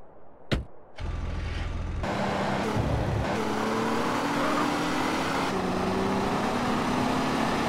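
A car engine starts and revs, rising in pitch as the car speeds up.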